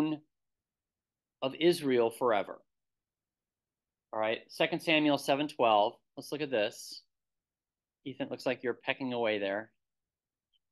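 A man speaks calmly into a microphone, heard as if through an online call, in short phrases with pauses.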